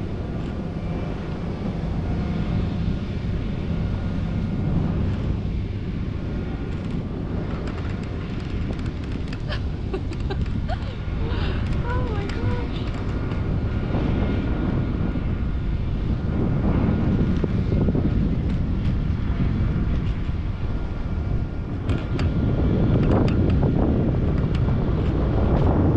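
Strong wind rushes and buffets against a microphone high in open air.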